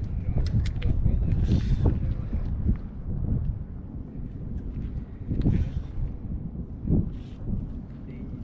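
A fishing reel clicks as a man winds it in.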